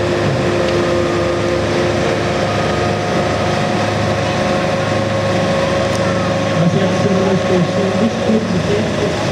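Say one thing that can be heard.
An engine hums steadily outdoors.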